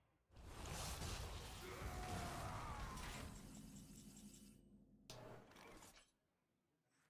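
A loud magical blast booms and crackles, then rings out.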